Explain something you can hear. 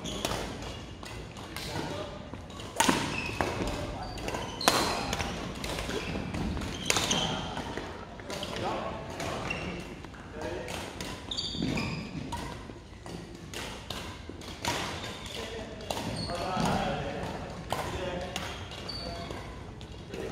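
Shoes squeak on a wooden floor.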